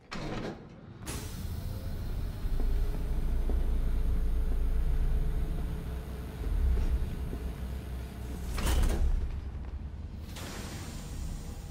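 A heavy metal vault door creaks and grinds as it swings open.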